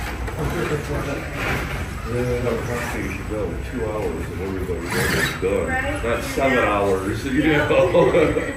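A small electric motor whirs as a toy truck crawls over rough ground.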